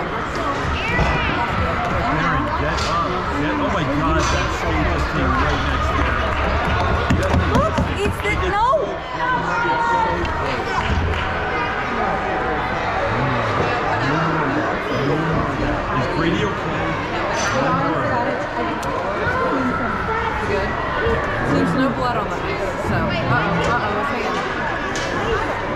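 Hockey sticks clack against the ice.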